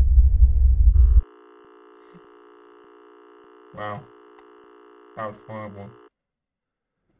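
A steady electronic test tone hums.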